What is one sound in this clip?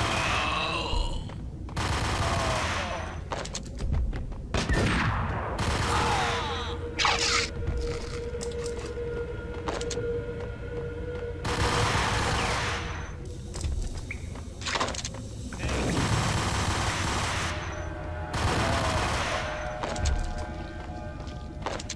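Footsteps run across a hard floor.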